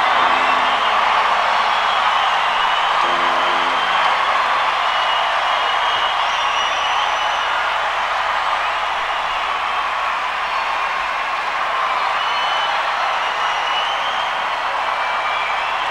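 A large crowd applauds and claps.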